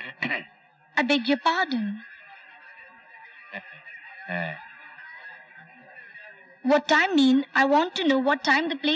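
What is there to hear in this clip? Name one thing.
A middle-aged woman speaks with animation, close by.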